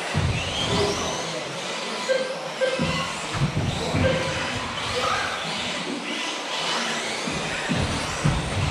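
Small electric model cars whine and buzz as they race around in a large echoing hall.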